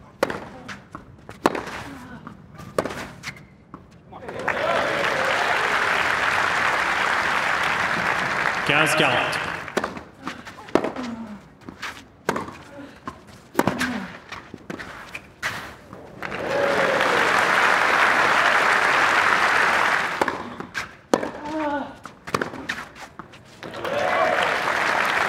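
A tennis ball is struck sharply back and forth by rackets.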